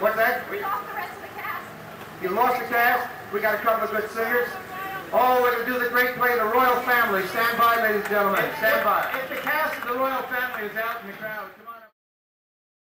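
A man sings.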